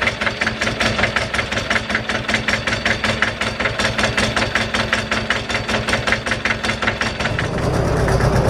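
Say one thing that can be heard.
A tractor's diesel engine idles with a steady, fast chugging.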